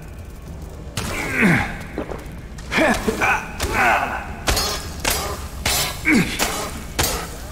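An insect-like creature shrieks.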